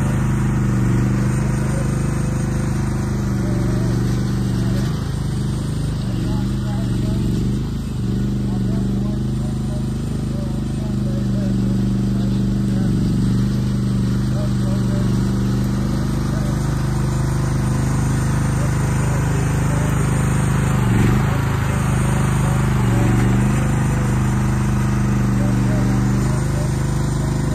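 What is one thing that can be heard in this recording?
Excavator tracks clank and squeak as the machine moves.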